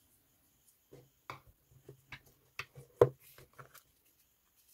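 Light knocks and taps sound as a cardboard box is handled on a table.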